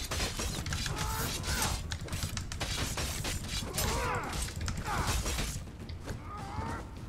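A man grunts and cries out in battle.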